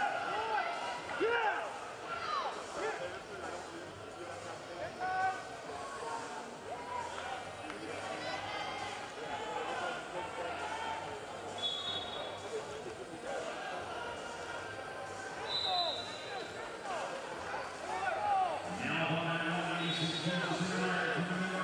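Coaches shout loudly from the side of the mat.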